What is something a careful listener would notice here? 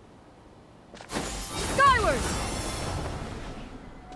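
A loud whooshing gust of wind bursts out and slowly fades.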